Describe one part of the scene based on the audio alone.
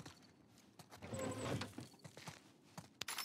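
A desk drawer scrapes open.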